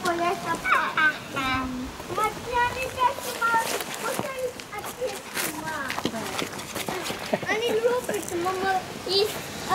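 A woman talks cheerfully nearby.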